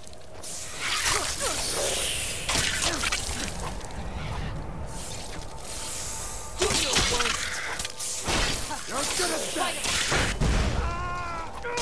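Magic fire roars and crackles in bursts.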